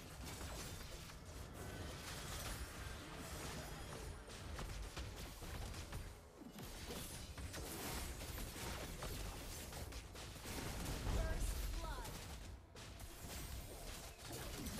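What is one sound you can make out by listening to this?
Game battle effects clash and burst with magic blasts and hits.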